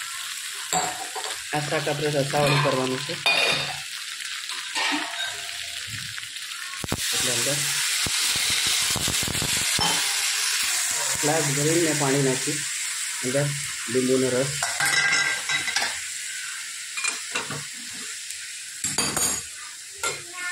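A metal spatula scrapes and clatters against a pan.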